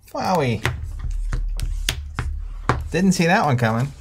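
Game pieces click on a board.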